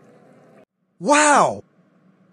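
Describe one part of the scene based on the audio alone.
A young man exclaims loudly with excitement.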